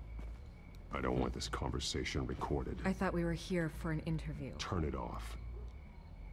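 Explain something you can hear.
A woman speaks calmly, heard through a recording.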